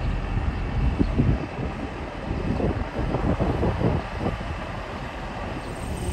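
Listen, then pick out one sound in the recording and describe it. A truck engine idles nearby with a low rumble.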